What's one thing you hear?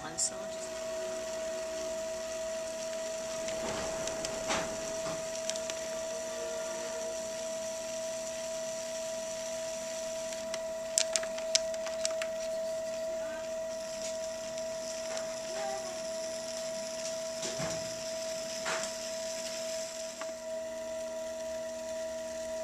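A metal trimming tool scrapes wet clay on a spinning pot.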